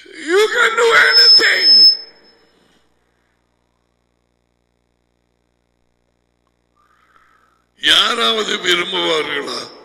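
A middle-aged man speaks emphatically into a headset microphone, heard close.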